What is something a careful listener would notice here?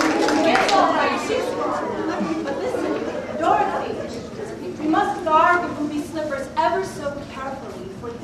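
A woman speaks with animation in an echoing hall.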